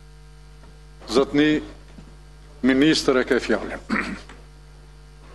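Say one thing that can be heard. An older man speaks briefly into a microphone, announcing.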